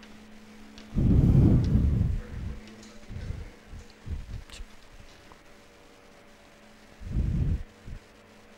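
A cloth duster rubs across a whiteboard in short swipes.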